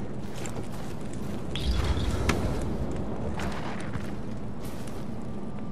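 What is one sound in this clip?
A blade hacks wetly into an animal carcass.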